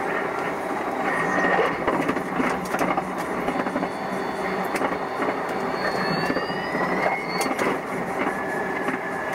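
Train wheels clatter and squeal over switches.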